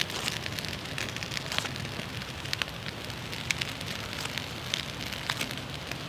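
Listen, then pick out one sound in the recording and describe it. A fire steel scrapes sharply a few times.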